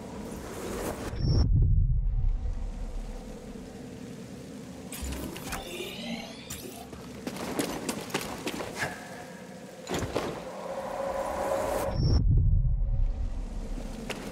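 A heavy thud of a landing after a jump rumbles low.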